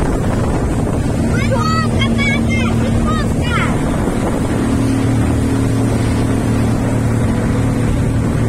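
A motorboat engine drones.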